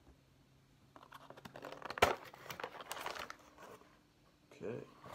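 Cardboard rustles and scrapes as a box is opened.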